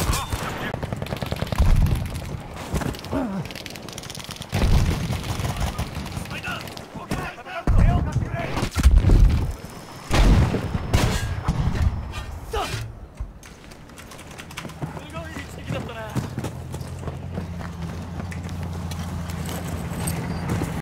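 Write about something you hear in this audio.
Gunfire rattles in the distance.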